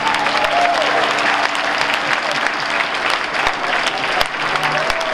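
A large audience cheers and whistles.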